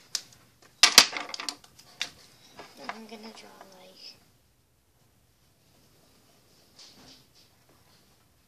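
Plastic markers click and clatter against each other on a table.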